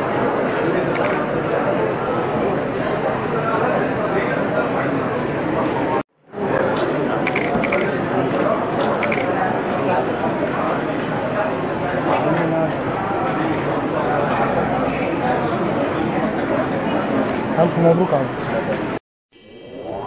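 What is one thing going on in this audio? A crowd murmurs and chatters in a room.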